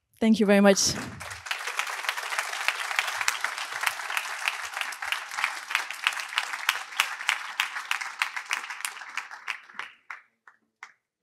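An audience applauds, with steady clapping.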